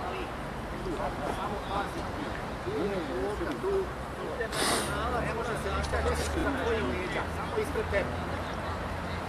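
Players shout to each other across an open outdoor pitch.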